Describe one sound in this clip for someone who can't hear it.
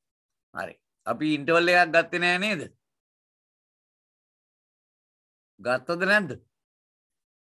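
A man speaks calmly into a microphone, heard over an online call.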